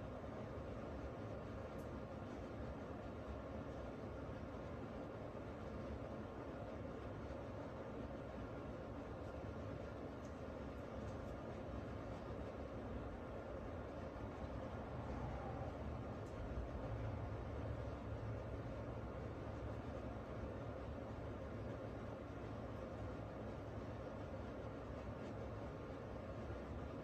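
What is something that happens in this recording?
An older woman talks calmly and close to a microphone.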